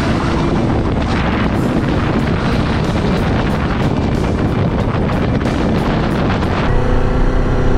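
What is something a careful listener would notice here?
Wind roars loudly over a moving motorcycle.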